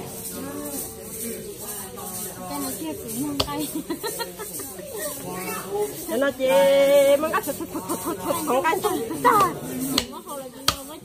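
Several women talk and laugh nearby with animation.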